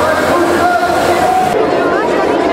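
Water gushes and splashes down in a heavy spray.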